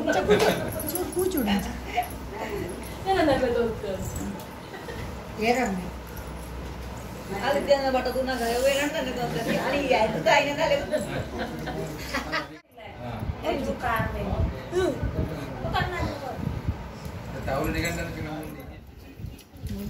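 A woman talks and laughs cheerfully close by.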